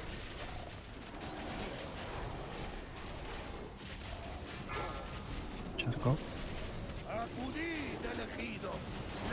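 Magic spells crackle and whoosh in a busy battle.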